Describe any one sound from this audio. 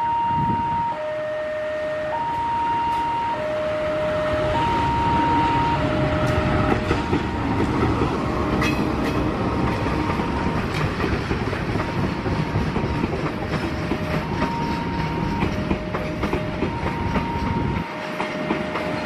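A diesel locomotive engine rumbles as a train approaches and passes close by.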